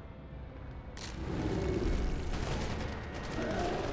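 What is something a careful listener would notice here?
A heavy whooshing rush of dark energy swirls.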